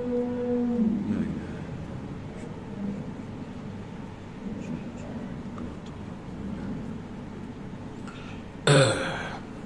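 An elderly man speaks softly into a microphone.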